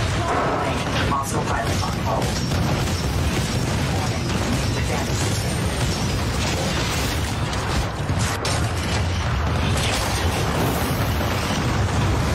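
Heavy gunfire and explosions rumble steadily from a video game.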